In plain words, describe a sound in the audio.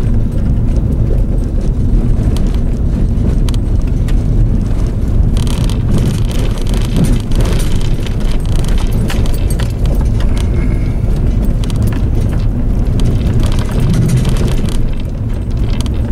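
Tyres crunch and rattle over a gravel road.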